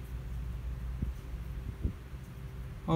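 Fingers tap and click on a small plastic device.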